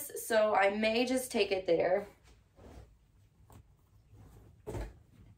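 Fabric rustles as clothing is handled.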